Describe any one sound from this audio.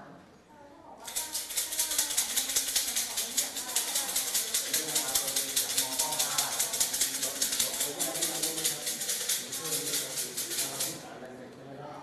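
Wooden sticks rattle quickly in a cup.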